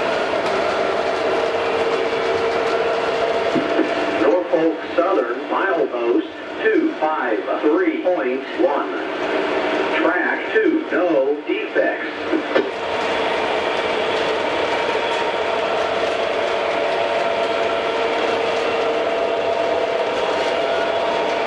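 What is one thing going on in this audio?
A model train rumbles and clatters steadily along its track.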